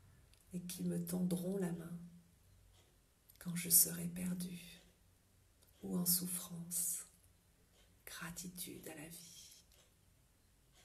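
A woman speaks calmly and softly, close to a microphone, in short phrases with pauses.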